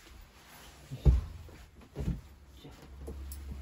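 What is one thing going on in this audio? A person sits down heavily on a soft bed with dull thumps.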